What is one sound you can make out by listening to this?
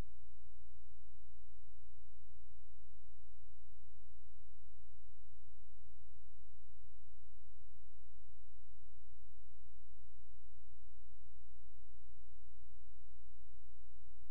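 A marching band plays brass and drums outdoors, faint and far off.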